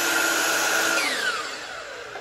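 A power miter saw winds down after its motor is released.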